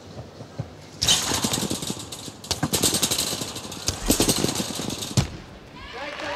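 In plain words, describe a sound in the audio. A trampoline creaks and thumps with repeated bounces.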